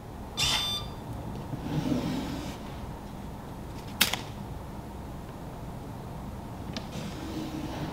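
A wooden door swings open and shut with a knock.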